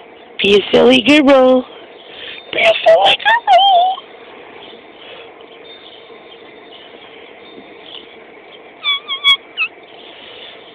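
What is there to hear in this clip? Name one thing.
A rubber toy squeaks sharply in bursts as a dog bites it.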